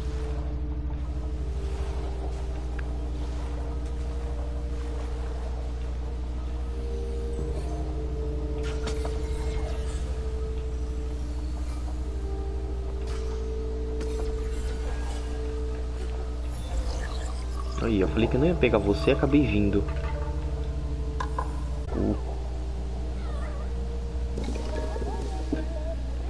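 Soft, calm music with sustained tones plays throughout.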